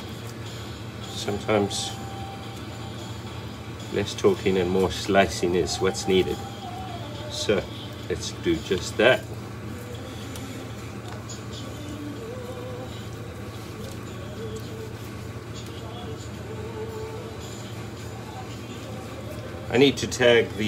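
A knife slices softly through raw meat.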